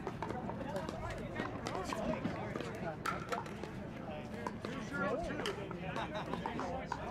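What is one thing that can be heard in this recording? Paddles pop against plastic balls on nearby courts.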